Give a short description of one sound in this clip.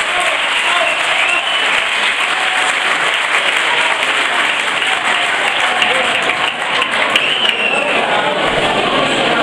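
A crowd claps along in a room with some echo.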